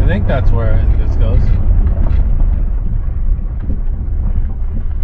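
A vehicle engine rumbles low and steady while driving.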